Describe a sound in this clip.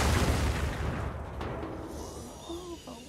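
A heavy crash rumbles and fades away.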